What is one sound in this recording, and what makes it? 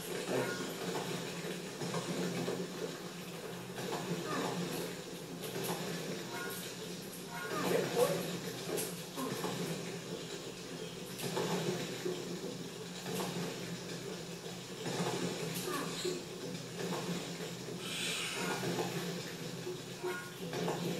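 Video game music plays through a television speaker.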